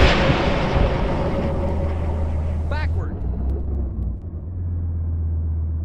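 Flames roar and crackle from a burning wreck.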